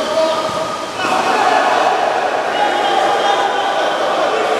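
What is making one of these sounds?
A crowd in an echoing hall cheers loudly, swelling suddenly.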